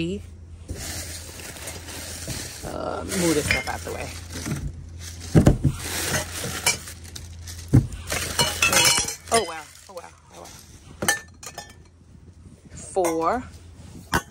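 Metal cups clink against each other.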